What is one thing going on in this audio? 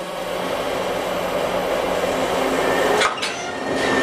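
A locomotive couples to a freight wagon with a metallic clank.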